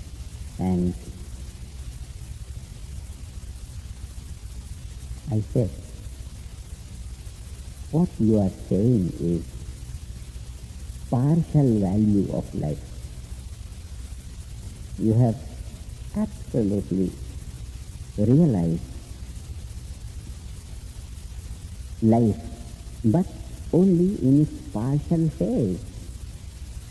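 An elderly man speaks slowly, with long pauses, close to a microphone.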